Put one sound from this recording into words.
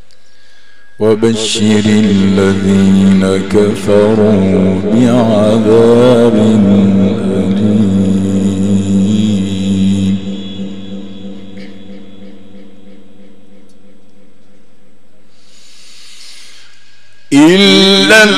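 A man chants in a long, drawn-out singing voice through a microphone, with echo.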